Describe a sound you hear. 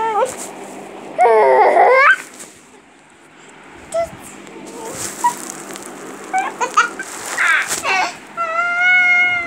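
A baby coos and squeals playfully close by.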